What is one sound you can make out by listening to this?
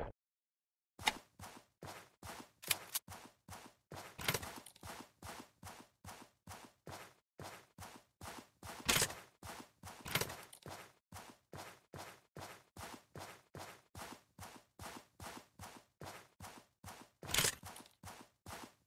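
Quick footsteps patter steadily on grass.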